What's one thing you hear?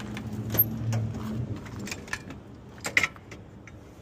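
A metal compartment door clanks open.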